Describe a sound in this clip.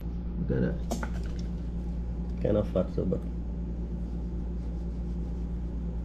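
A knife slices through a tomato on a wooden board.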